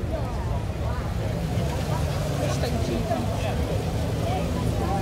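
A car engine rumbles deeply at idle nearby.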